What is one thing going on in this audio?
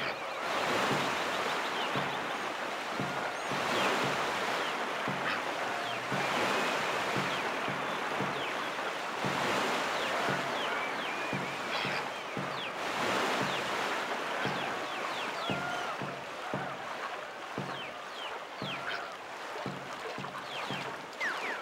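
Paddles splash rhythmically through water.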